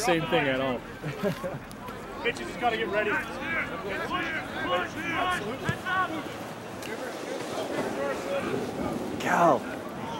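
Players shout to each other across a field.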